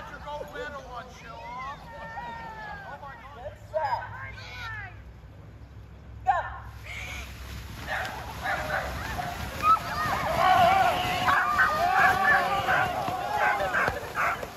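A crowd of adults and children cheers and shouts outdoors.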